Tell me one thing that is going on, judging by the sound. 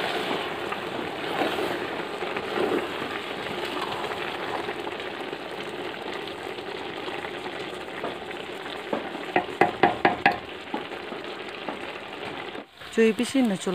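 Thick food sizzles and bubbles in a hot pot.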